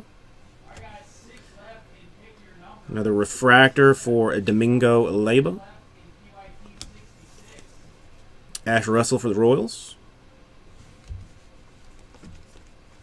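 Trading cards slide and flick softly against each other.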